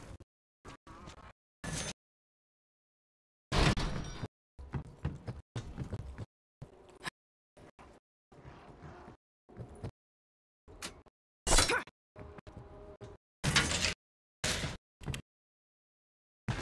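Footsteps run quickly over hard ground and metal.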